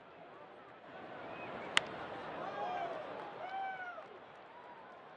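A large stadium crowd cheers.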